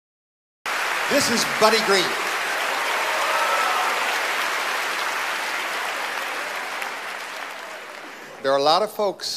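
A large audience applauds loudly in a big hall and the applause slowly fades.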